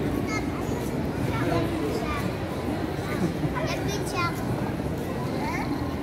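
Children shriek and squeal playfully nearby.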